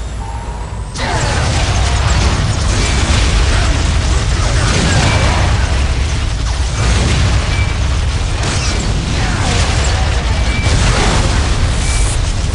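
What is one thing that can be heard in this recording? Rapid gunfire rattles in a noisy battle.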